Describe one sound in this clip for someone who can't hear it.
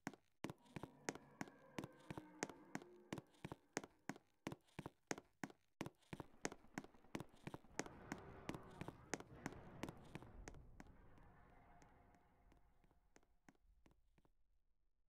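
Footsteps tap quickly and evenly on the ground.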